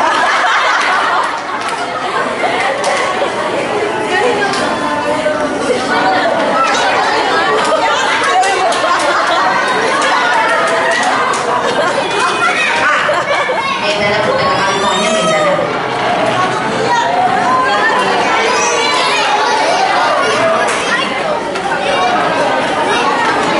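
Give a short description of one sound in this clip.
A young woman laughs and talks.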